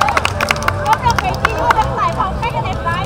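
Players clap hands as they greet each other.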